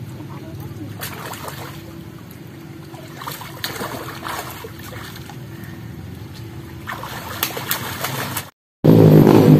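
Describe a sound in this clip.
Water splashes as a child kicks and swims.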